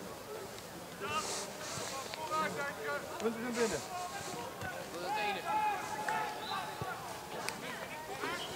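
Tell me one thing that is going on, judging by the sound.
Boys shout to each other across an open outdoor field.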